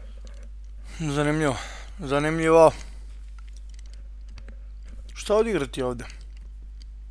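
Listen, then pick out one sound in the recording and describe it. A young man speaks calmly into a headset microphone.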